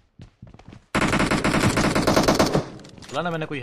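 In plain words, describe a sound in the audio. A rifle fires a loud, rapid burst of gunshots.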